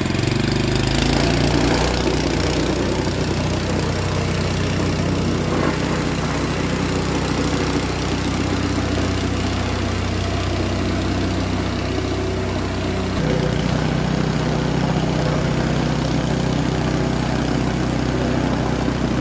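A plate compactor's engine thuds and rumbles loudly and steadily.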